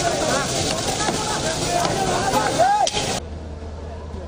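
Water hoses spray with a loud, steady rush.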